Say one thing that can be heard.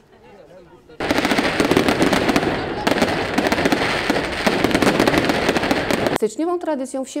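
Fireworks crackle and bang loudly.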